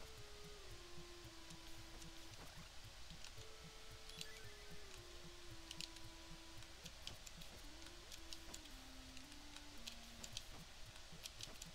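Retro video game chiptune music plays with a steady beat and stepping melody.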